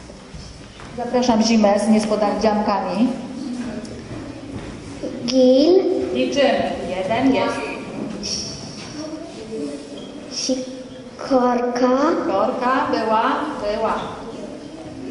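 A woman speaks with animation into a microphone, heard through a loudspeaker in an echoing hall.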